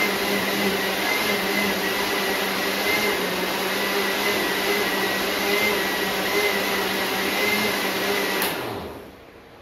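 A blender whirs loudly and steadily, then stops.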